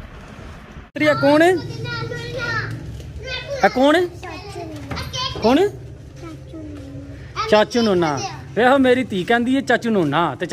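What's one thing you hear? Young boys talk with animation close by.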